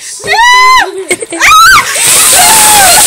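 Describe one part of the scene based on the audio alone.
A woman shrieks loudly outdoors.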